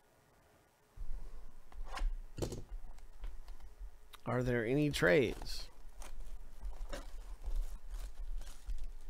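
Plastic wrap crinkles and rustles around a cardboard box.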